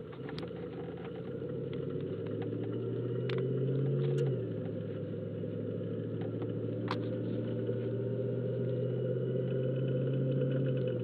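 Tyres roll on a paved road.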